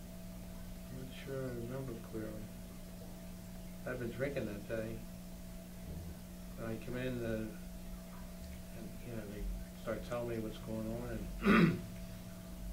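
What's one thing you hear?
An elderly man speaks calmly in short bursts.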